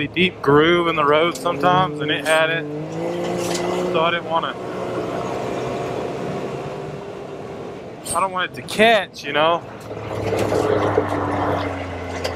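An off-road vehicle's engine hums steadily.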